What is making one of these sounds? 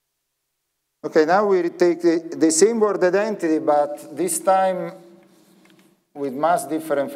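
A man lectures calmly through a microphone in a large echoing hall.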